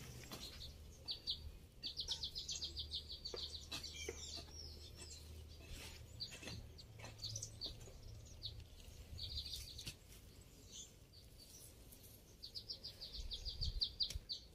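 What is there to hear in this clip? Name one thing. A hoe chops into soft soil.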